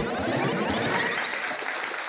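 A middle-aged man chuckles close to a microphone.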